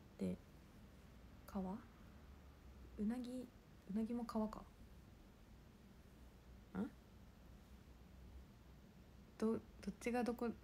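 A young woman speaks softly and close by, in short phrases.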